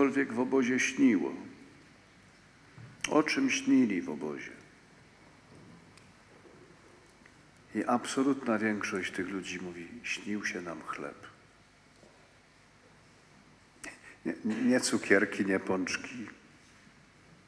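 An elderly man speaks slowly and solemnly into a microphone, with pauses, in a reverberant hall.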